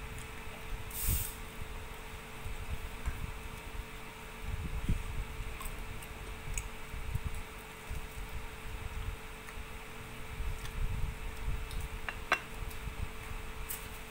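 A man chews food noisily up close.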